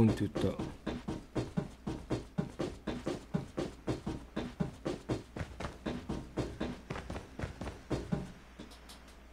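Footsteps run quickly and steadily on a hard floor.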